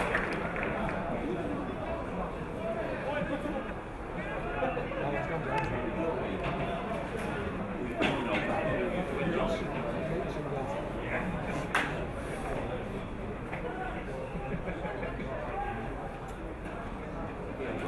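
Spectators nearby chat and talk outdoors.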